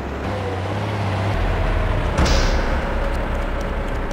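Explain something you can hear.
A truck door thuds shut.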